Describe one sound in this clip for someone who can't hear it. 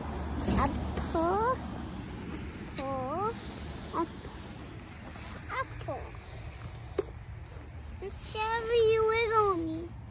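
A young girl talks and squeals in a high voice close by.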